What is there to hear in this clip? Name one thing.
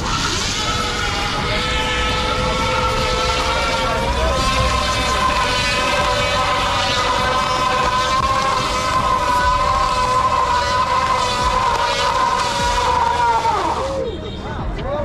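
A spinning tyre squeals loudly and steadily against the road.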